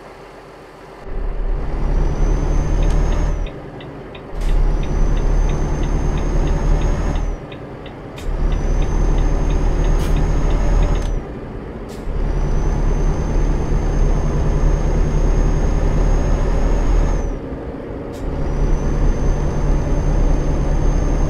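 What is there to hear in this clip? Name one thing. A truck engine roars, revving up and dropping again between gear changes.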